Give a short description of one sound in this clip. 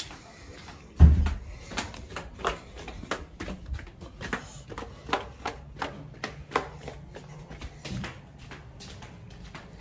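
Footsteps tap down concrete steps.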